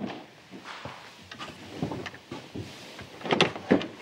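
A telephone receiver clatters as it is picked up.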